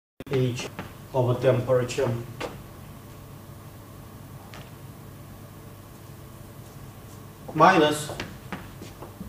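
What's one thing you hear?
An elderly man lectures calmly through a microphone.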